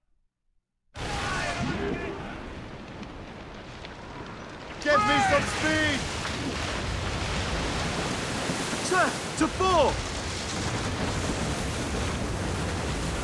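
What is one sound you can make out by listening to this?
Rough sea waves rush and roar steadily.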